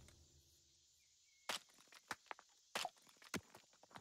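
An axe chops at wood with sharp knocks.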